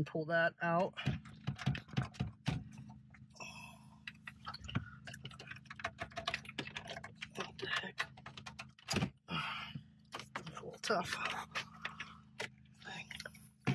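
Wiring plugs click as they are unplugged from a car radio.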